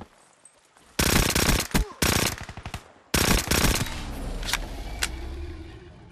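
A rifle fires in rapid shots.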